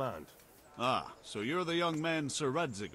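A middle-aged man answers calmly.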